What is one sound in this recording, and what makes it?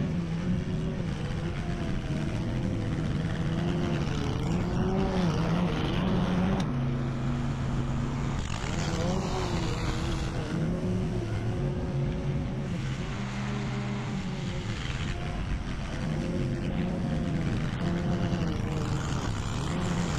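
A petrol lawn mower engine drones steadily outdoors, its pitch rising and falling as it moves closer and farther away.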